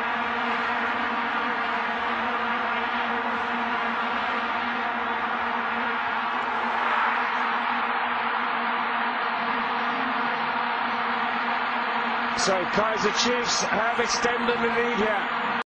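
Many plastic horns drone in a steady, buzzing hum from a crowd.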